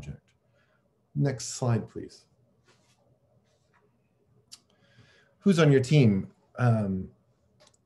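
A middle-aged man speaks calmly through an online call, in short phrases with pauses.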